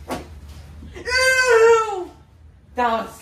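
A young boy shouts with excitement.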